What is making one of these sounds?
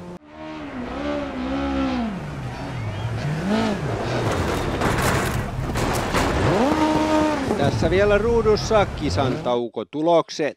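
Gravel sprays and crunches under a rally car's tyres.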